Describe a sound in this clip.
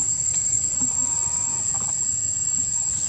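A young monkey squeaks briefly.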